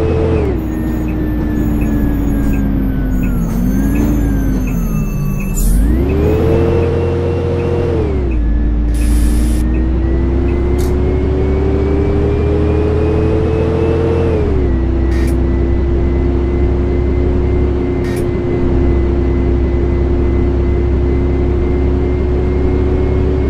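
A bus engine hums and rises and falls in pitch as the bus speeds up, slows and changes gear.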